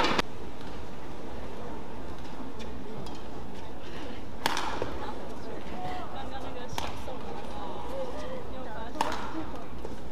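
Shuttlecock strikes crack sharply in a large echoing hall.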